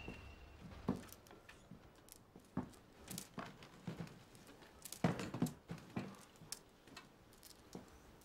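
Footsteps tap on a hard pavement nearby.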